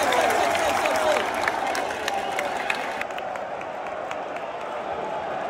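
A large stadium crowd chants and roars.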